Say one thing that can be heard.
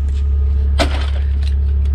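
A boot kicks against a car bumper with a thud.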